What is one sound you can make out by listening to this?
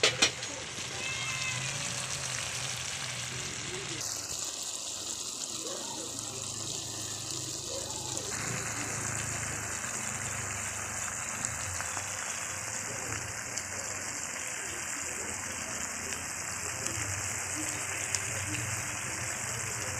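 A thick stew bubbles and sizzles steadily in a pan.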